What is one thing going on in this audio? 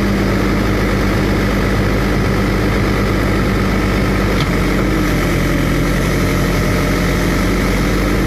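An excavator bucket scrapes and digs into soil.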